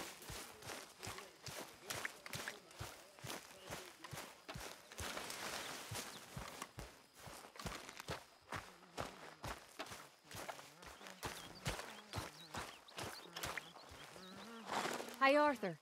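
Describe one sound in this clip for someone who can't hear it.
Footsteps tread steadily through wet grass.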